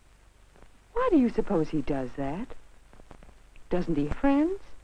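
A young boy speaks with animation, close by.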